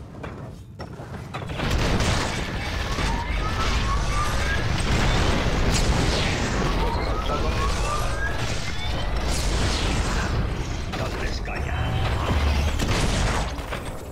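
Magic blasts and impacts crackle during a game battle.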